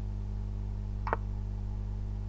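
A chess piece clicks onto the board once.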